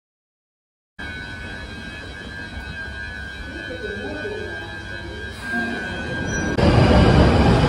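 A subway train hums steadily while standing at a platform.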